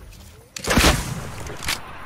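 A gunshot rings out nearby.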